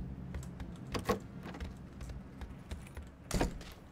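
A wooden door swings open.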